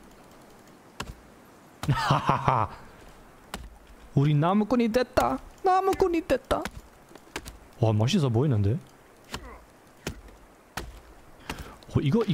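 An axe chops into wood with sharp knocks.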